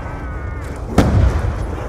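A heavy gun fires with a loud blast.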